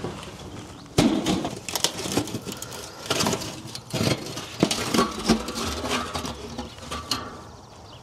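A metal pan clanks and scrapes against a steel drum.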